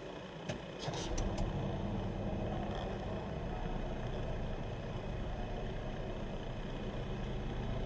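A car engine starts and idles with a low steady hum.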